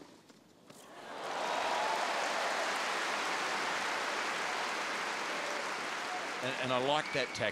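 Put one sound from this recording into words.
A large crowd applauds and cheers loudly, then dies down.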